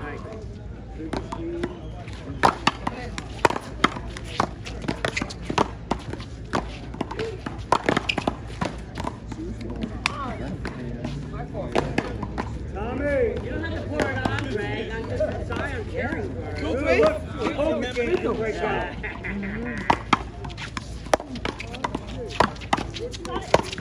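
Paddles smack a ball against a wall with sharp, echoing pops.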